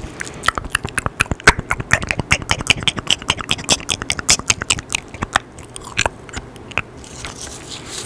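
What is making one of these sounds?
A young man makes soft wet mouth clicks very close to a microphone.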